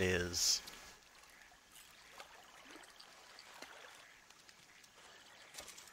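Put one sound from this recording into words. A fishing reel clicks softly as line is wound in.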